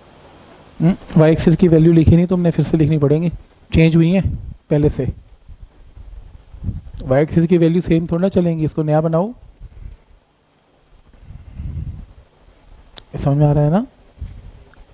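A man explains calmly.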